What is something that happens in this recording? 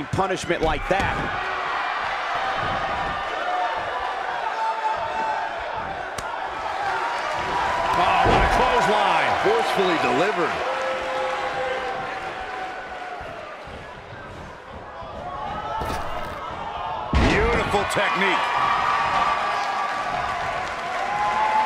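A large crowd cheers and roars steadily in an arena.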